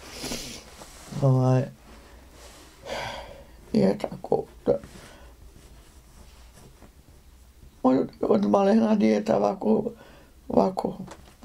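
An elderly woman talks calmly and close by, with pauses.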